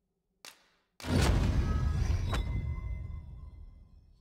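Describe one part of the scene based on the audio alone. A deep rumbling whoosh swells suddenly with a chime, then slowly fades.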